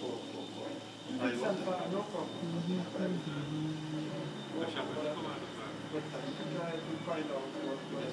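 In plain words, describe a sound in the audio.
An elderly man talks calmly on a phone nearby.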